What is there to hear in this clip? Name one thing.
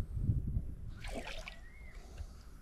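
A small fish splashes at the surface of the water.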